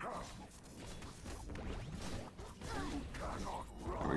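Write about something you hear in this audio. Game weapons clash and hit in a fight.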